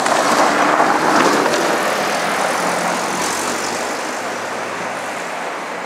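Tyres roar steadily on the road from inside a moving car, slowly growing quieter.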